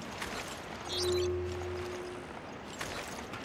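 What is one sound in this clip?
An electronic scanner beeps with a short tone.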